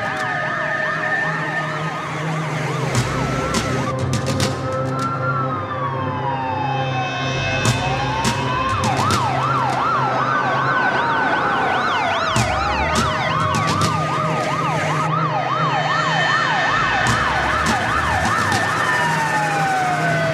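Two-tone horns blare from fire engines.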